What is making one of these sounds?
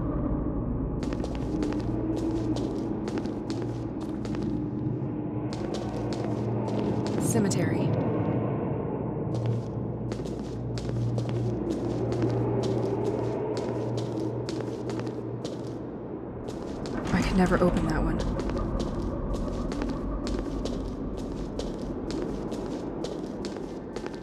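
Footsteps tap quickly across a stone floor.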